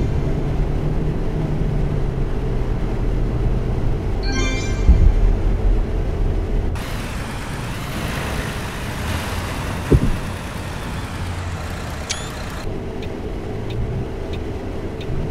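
A bus engine hums steadily at low pitch.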